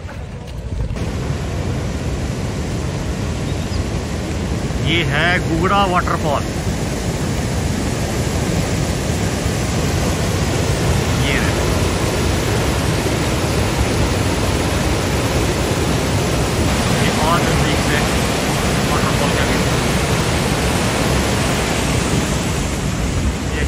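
A river rushes over rocks and down a waterfall.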